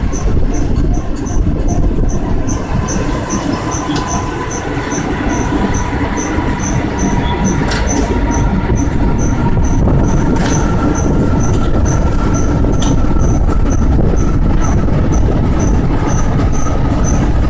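A train rumbles and clatters along the tracks up close.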